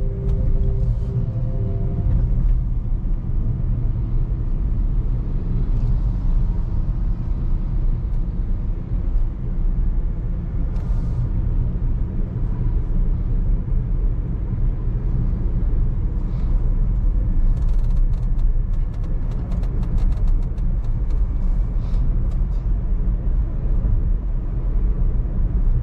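A car's engine and tyres hum steadily from inside the car as it drives along a road.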